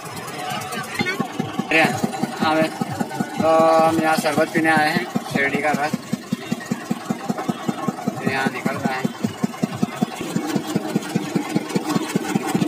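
A machine engine chugs rhythmically up close.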